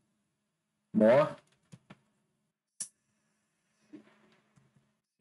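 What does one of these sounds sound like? A young man speaks briefly and close to a microphone.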